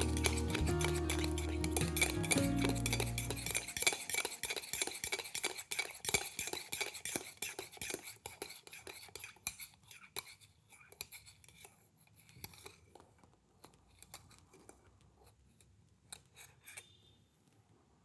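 A spoon stirs quickly in a ceramic mug, clinking against the sides and slowing down.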